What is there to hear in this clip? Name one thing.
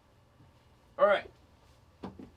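A man calls out briefly close by.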